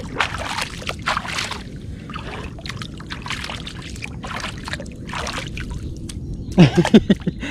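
Fish splash and thrash in shallow water close by.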